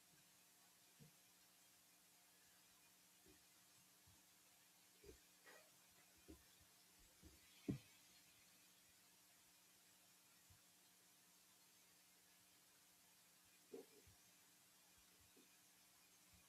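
Small objects knock on a table now and then.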